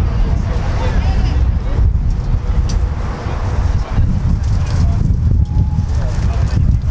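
Men call out to each other across an open outdoor pitch.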